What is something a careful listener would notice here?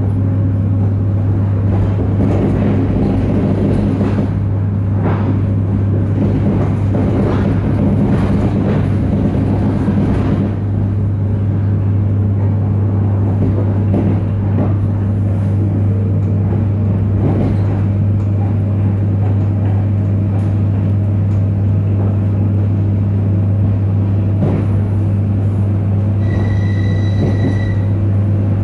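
A train rumbles and hums steadily as it rolls slowly along.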